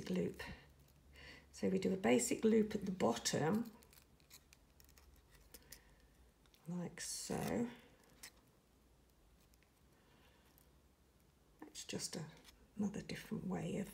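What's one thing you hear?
Small metal pliers click softly as they bend thin wire.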